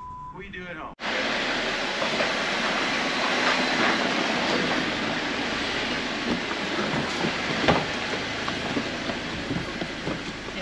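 Loose rocks crunch and scrape under tyres.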